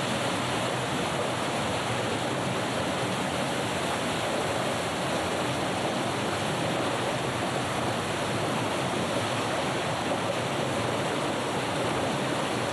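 Water rushes and splashes through a mill's water wheel.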